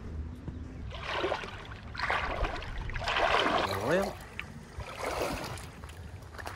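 Footsteps crunch and splash on wet gravel.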